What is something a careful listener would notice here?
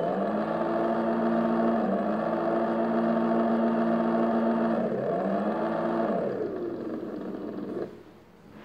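A game's engine sound revs and drones steadily, rising and falling in pitch.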